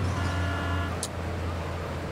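A car crashes.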